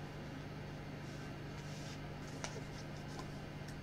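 A card slides lightly off a pile of cards.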